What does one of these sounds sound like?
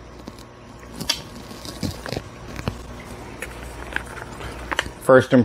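A foil bag crinkles as it is handled.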